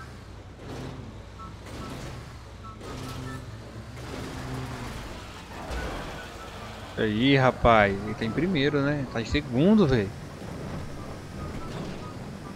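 A bus engine hums and revs steadily.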